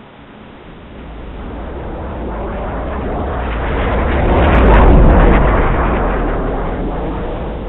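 A jet roars past overhead, growing loud and then fading.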